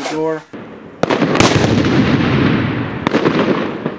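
Fireworks crackle and pop in the night.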